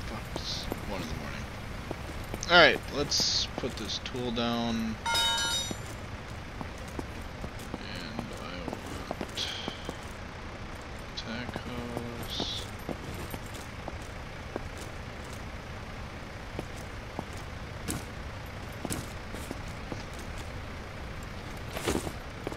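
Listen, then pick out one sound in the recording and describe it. A fire truck engine idles.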